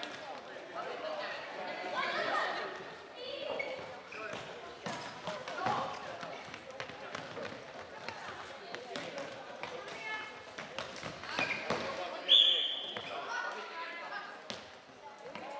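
Children shout to each other as they play.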